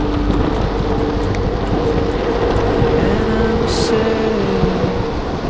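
Skateboard wheels roar steadily on smooth pavement.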